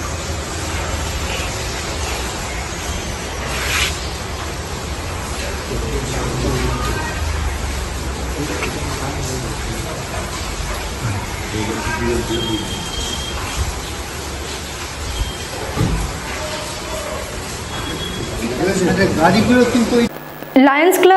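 A group of people murmur and talk quietly outdoors.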